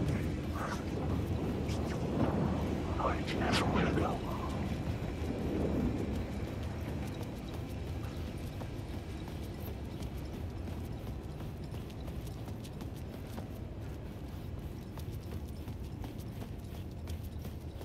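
Footsteps walk over a hard floor.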